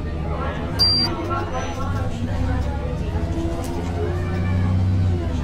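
A bus engine hums steadily with a low drone.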